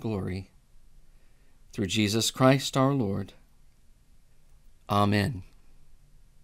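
A middle-aged man reads aloud calmly, close to a microphone.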